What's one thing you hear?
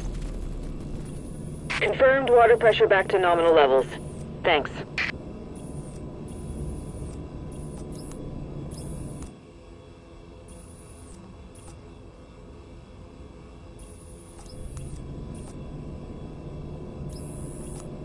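Short electronic blips sound from a game menu again and again.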